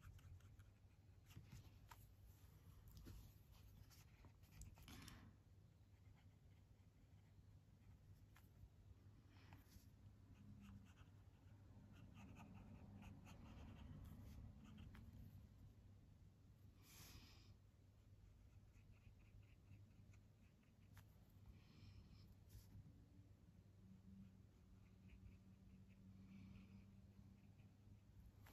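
A pen scratches and scrapes softly across paper.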